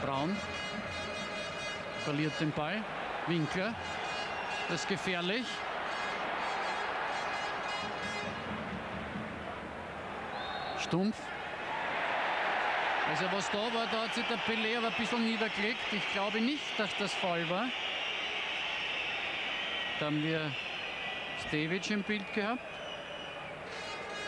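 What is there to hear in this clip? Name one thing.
A large crowd roars and chants throughout a stadium.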